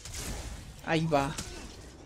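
A fiery blast bursts loudly.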